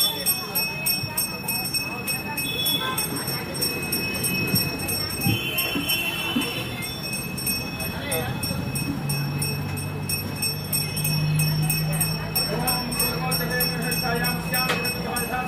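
A man chants in a prayer nearby.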